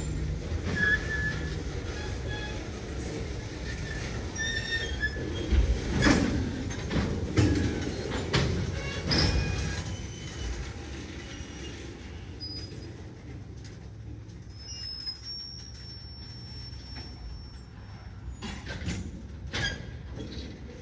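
A freight train rumbles slowly past close by.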